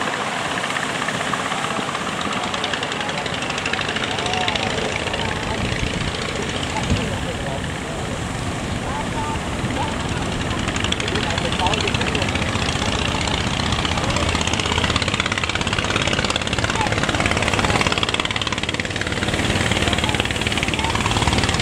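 A boat engine chugs nearby.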